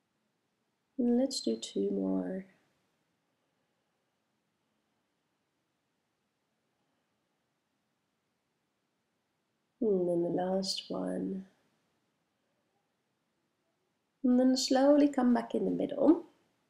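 A woman speaks calmly and softly in short phrases, close by in a quiet room.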